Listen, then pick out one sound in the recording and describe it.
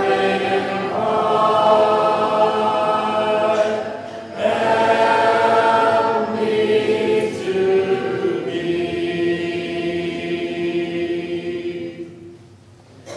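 A congregation sings a hymn together in a large echoing hall.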